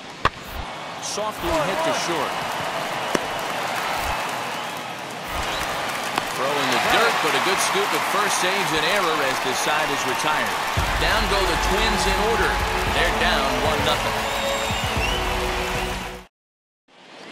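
A large stadium crowd cheers and murmurs.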